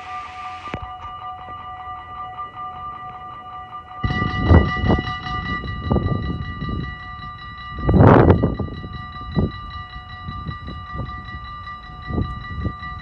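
Level crossing bells ring steadily and rapidly.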